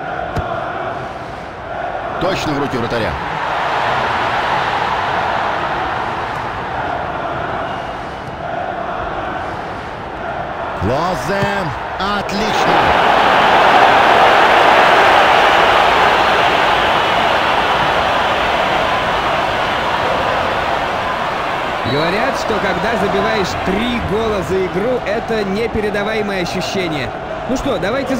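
A large stadium crowd roars steadily, swelling into loud cheers.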